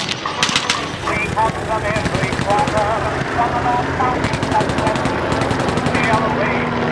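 A propeller plane engine drones overhead.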